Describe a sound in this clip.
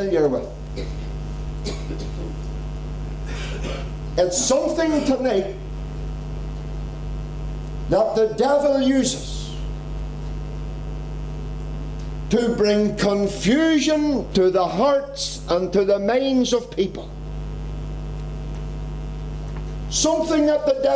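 A middle-aged man preaches with animation through a microphone, in bursts with long pauses.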